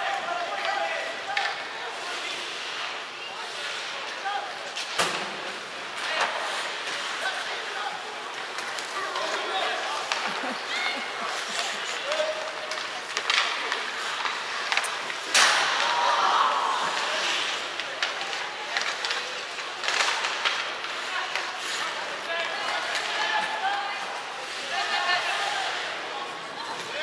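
Skates scrape and hiss across the ice in a large echoing arena.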